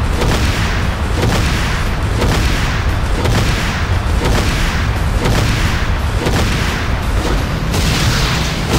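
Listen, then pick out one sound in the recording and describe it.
Explosions boom just ahead.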